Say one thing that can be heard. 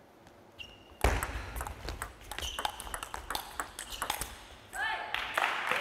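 Paddles hit a ping-pong ball back and forth in a fast rally.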